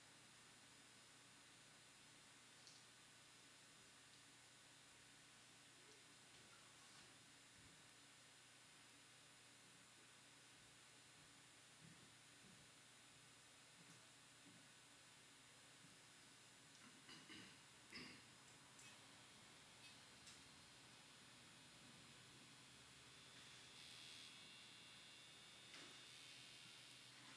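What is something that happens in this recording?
A man makes faint scratching and clicking sounds close to a microphone.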